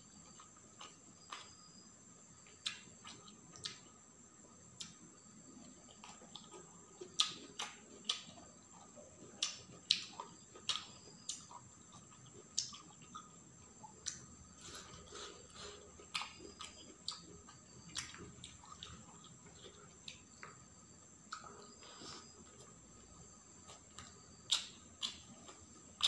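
Fingers squish and mix soft rice on a metal plate.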